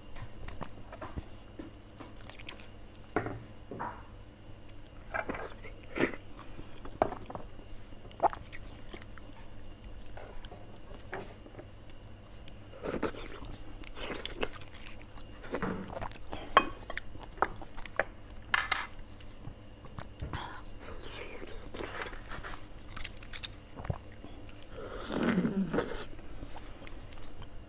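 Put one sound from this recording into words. Bones and food knock and scrape softly close to a microphone.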